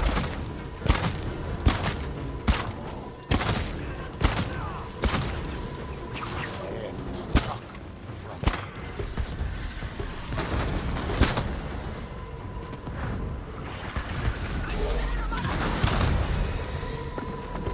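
Swords clash and slash in quick, sharp strikes.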